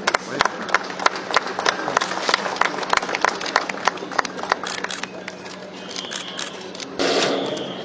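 A group of people applaud nearby.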